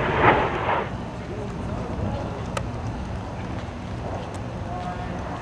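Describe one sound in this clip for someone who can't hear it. A jet plane roars overhead in the distance, outdoors.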